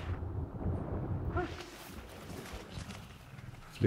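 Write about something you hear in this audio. Footsteps thud on sand.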